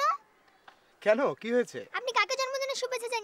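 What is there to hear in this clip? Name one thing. A young girl speaks brightly nearby.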